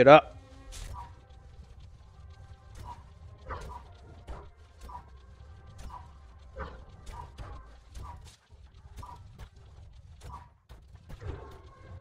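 A sickle swishes and cuts through leafy plants.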